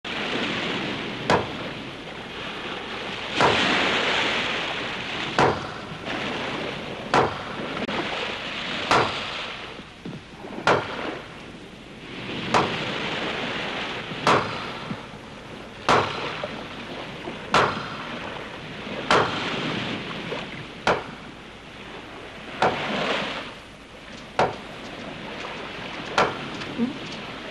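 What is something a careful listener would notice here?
Waves crash and wash onto a shore.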